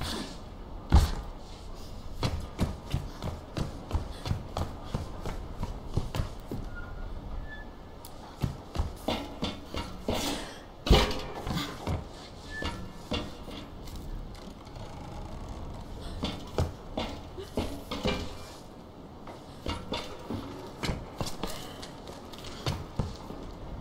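Footsteps thud on wooden planks at a steady walking pace.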